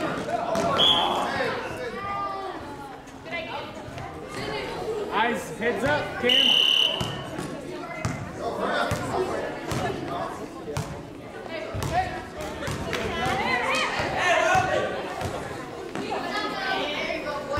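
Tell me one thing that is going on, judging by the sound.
Spectators talk and cheer in a large echoing gym.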